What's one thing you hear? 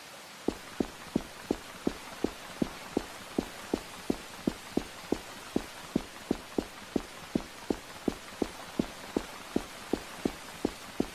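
Quick footsteps thud on a carpeted floor at a running pace.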